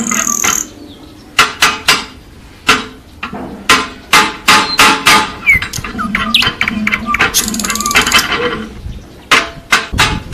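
A man strikes the ground with a hoe.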